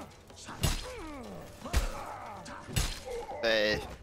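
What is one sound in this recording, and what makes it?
A sword strikes armour with sharp metallic clangs.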